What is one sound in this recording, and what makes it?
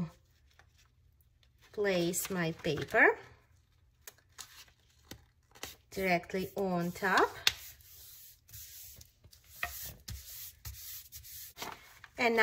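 Paper rustles and slides as hands smooth it flat.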